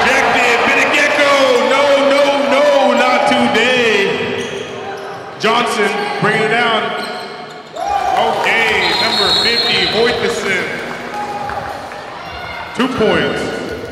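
Sneakers squeak on a hard court in an echoing gym.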